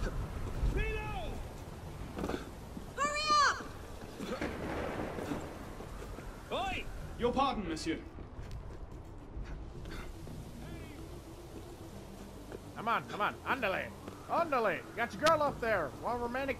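Footsteps thud quickly across roof tiles.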